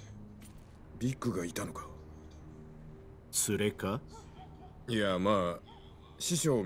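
A younger man answers briefly in a calm voice.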